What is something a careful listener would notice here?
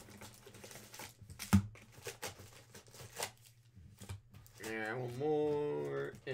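Card packs rustle and tap as they are pulled from a box.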